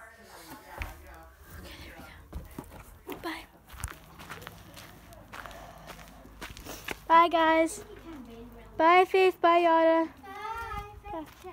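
A young person talks close by, then calls out loudly in a high voice.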